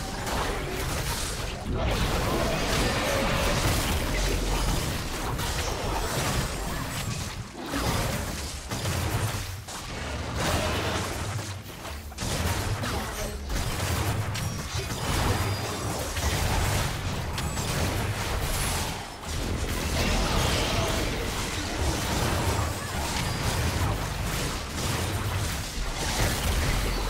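Magical blasts and clashing hits from a battle game crackle and boom without pause.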